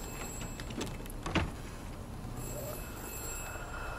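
A wooden door clicks and swings open.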